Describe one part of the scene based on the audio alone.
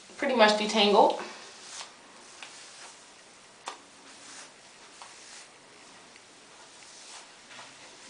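A brush scratches through hair.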